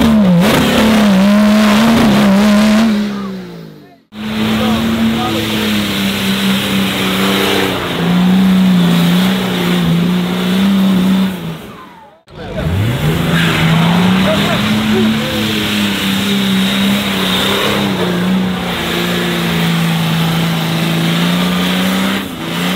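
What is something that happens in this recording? An off-road vehicle's engine roars and revs hard.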